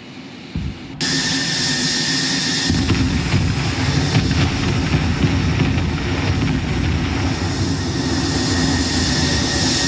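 Explosions boom and rumble nearby.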